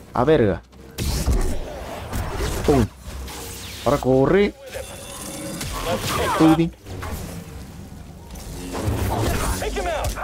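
Blaster shots ring out.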